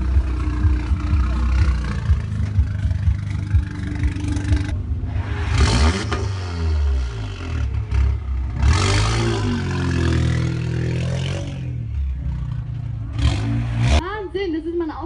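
A car engine revs hard and loud, rising and falling.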